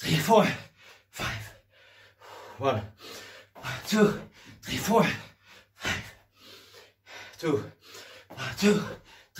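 A man pants heavily close by.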